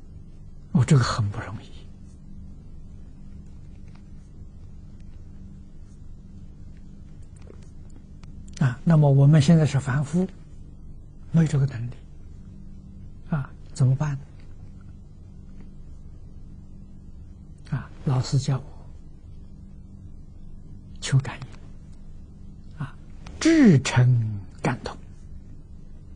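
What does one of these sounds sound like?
An elderly man speaks calmly into a close microphone, with long pauses between short phrases.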